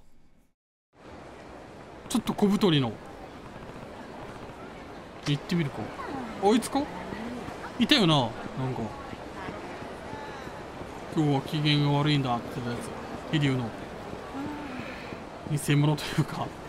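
Crowd noise murmurs along a busy city street.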